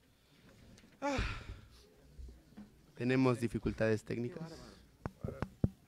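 Young men sing together in a group.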